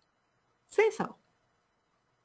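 A woman briefly speaks through a microphone.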